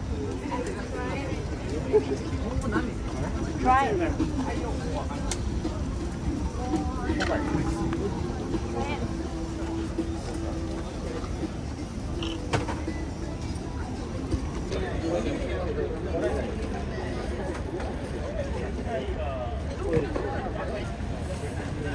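A crowd of men and women chat and talk nearby outdoors.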